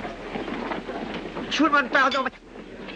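A young man speaks with surprise.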